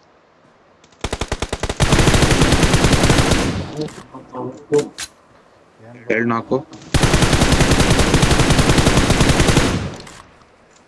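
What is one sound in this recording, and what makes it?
Rapid automatic gunfire rattles in loud bursts.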